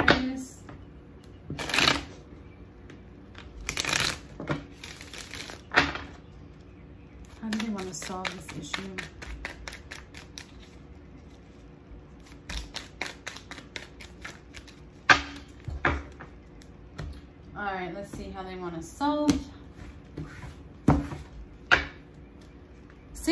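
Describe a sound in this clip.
Playing cards riffle and snap as they are shuffled by hand.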